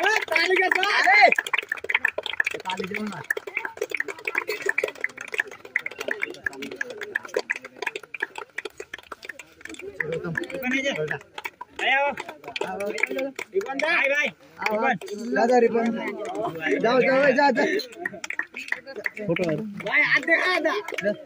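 Young men and boys talk and chatter nearby, outdoors.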